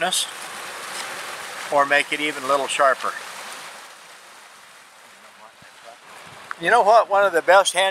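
Water rushes and splashes nearby.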